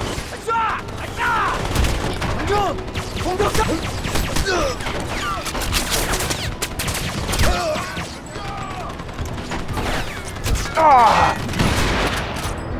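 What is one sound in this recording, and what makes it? Guns fire in sharp, rapid bursts.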